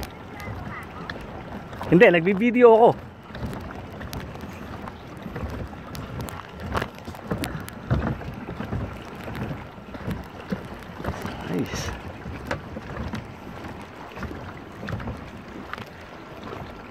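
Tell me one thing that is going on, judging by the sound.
Water laps gently against floating platforms and rocks.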